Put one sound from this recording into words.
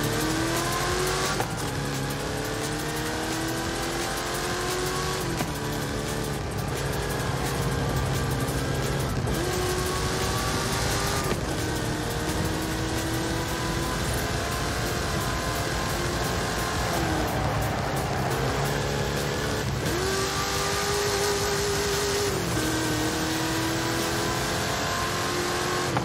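A car engine roars steadily, rising in pitch as it speeds up and dropping with each gear change.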